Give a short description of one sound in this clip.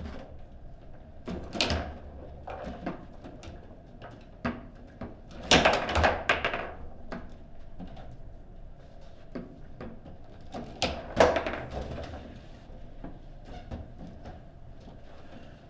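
A foosball ball clacks sharply against plastic players and the table walls.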